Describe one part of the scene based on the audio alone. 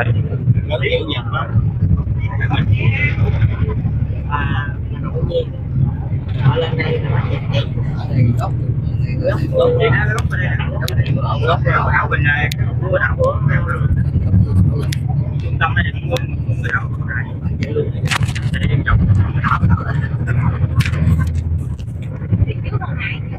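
A bus engine rumbles steadily from inside the vehicle.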